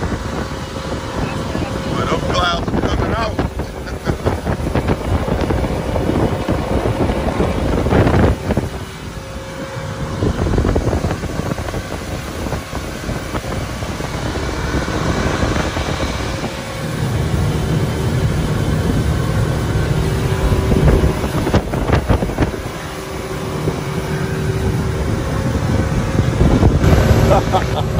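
A motorboat engine drones steadily at speed.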